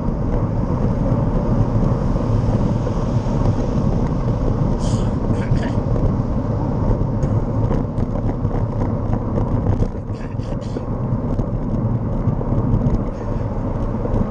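Wind rumbles hard and steadily outdoors.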